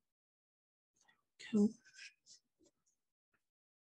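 A sheet of paper rustles as it is moved.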